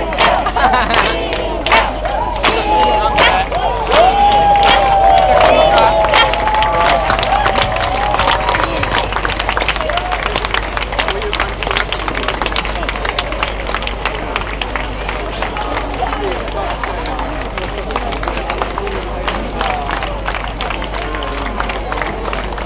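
A crowd of people chatters and shouts loudly outdoors.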